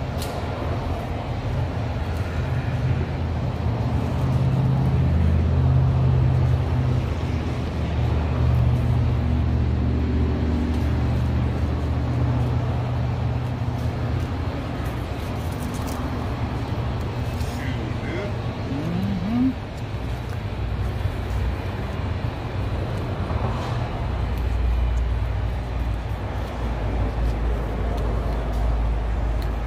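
A knife slices through fish on a hard surface.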